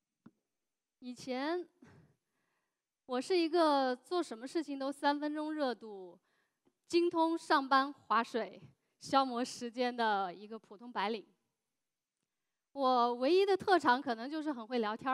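A young woman speaks with animation through a headset microphone.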